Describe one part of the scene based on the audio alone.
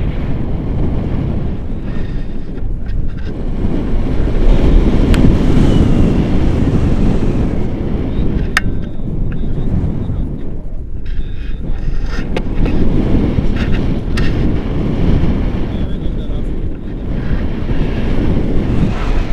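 Strong wind rushes and buffets against the microphone outdoors.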